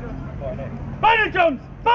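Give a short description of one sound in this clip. A brass band plays a short note.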